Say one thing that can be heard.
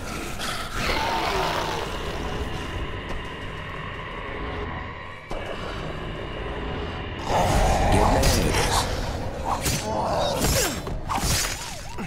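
A weapon strikes a zombie with heavy, wet thuds.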